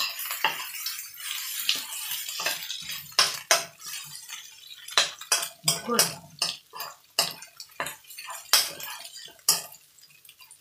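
A metal spoon scrapes and clinks against a wok as food is stirred.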